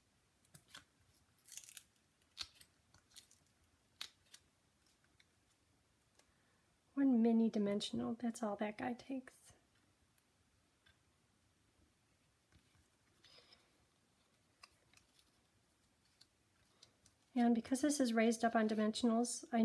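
Paper rustles and taps softly as cards are handled.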